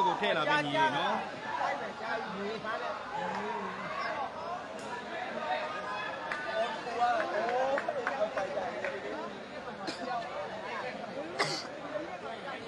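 A large crowd of men chatters and calls out all around in an echoing hall.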